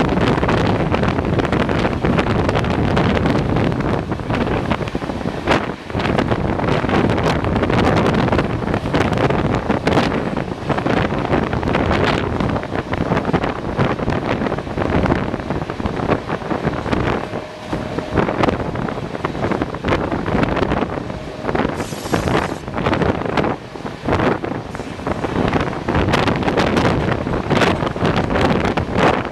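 A passenger train rumbles along the rails at speed.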